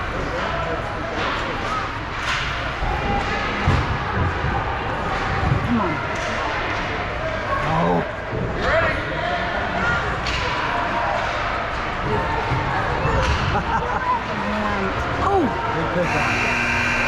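Hockey sticks clack against a puck on the ice.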